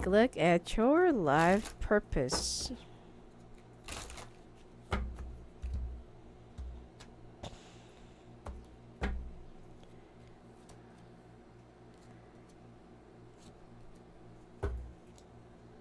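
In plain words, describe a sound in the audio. Cards shuffle and slap down on a table.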